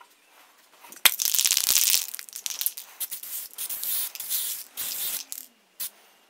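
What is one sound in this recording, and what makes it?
An aerosol can hisses as spray paint is sprayed.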